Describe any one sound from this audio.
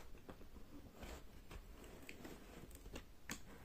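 Stiff plastic pages of a toy book flap and tap as they are turned.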